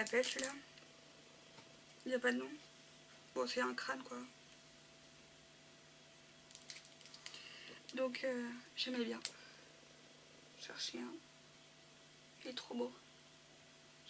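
A woman speaks calmly close to a microphone, in short phrases with pauses.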